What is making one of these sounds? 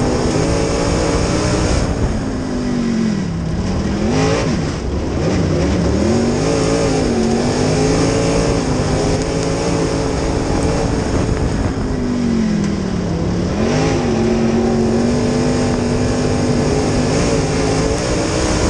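A race car engine roars up close, its pitch dipping and climbing as the driver lifts off and accelerates.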